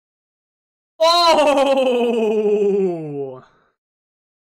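A young man exclaims loudly into a close microphone, his voice sliding downward.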